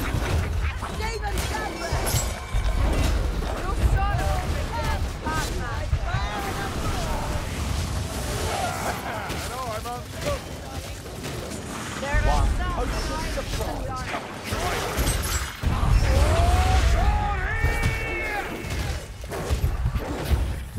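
Weapons strike and slash in quick, heavy blows.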